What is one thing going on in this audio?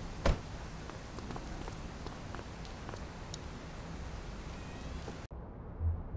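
Footsteps tap on wet pavement.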